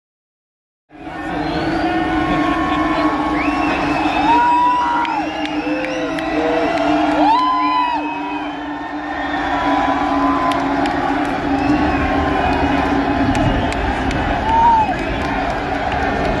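A large crowd cheers in a big echoing hall.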